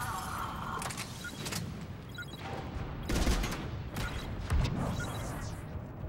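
Gunshots bang in short bursts with heavy booms.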